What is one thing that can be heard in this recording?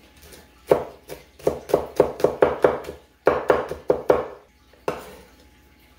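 A cleaver chops rapidly through garlic on a wooden chopping board.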